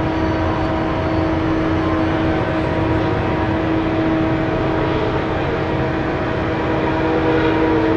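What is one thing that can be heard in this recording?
A large truck engine rumbles steadily as it drives past.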